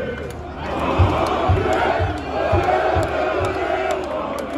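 People clap their hands.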